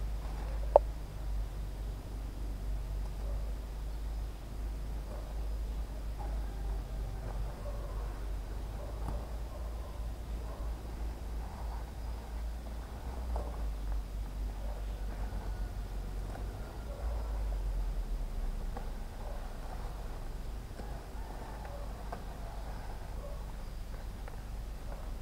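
Leaves rustle as a person pulls and picks through dense vines.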